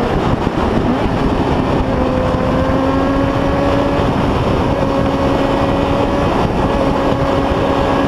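Wind roars loudly past the rider.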